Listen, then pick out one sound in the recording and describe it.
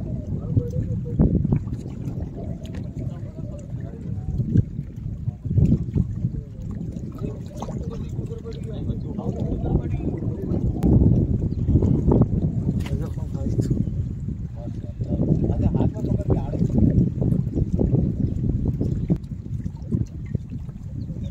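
Wind blows outdoors by open water.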